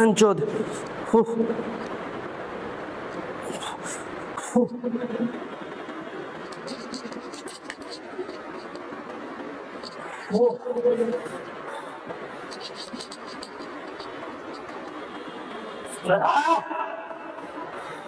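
A young man grunts and exhales loudly with effort.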